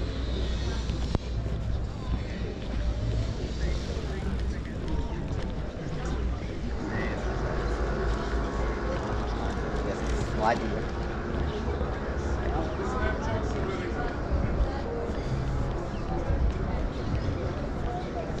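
Footsteps tap on paving at a walking pace.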